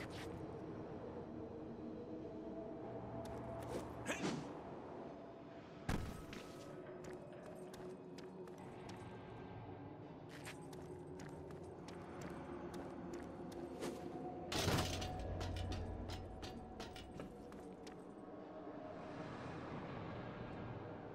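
Game music plays steadily.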